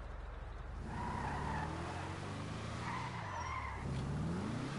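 Tyres squeal on pavement.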